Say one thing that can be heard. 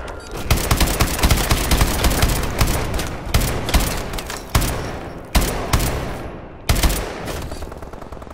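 Gunfire rattles in rapid bursts with loud echoing shots.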